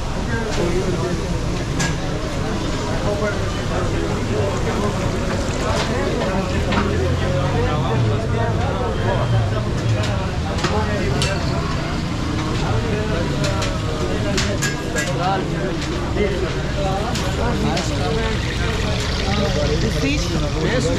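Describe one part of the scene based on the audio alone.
Men talk nearby in a busy crowd.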